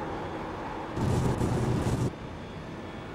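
Tyres rumble loudly over a kerb.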